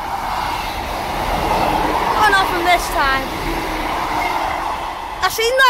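A train rumbles past close by on the tracks.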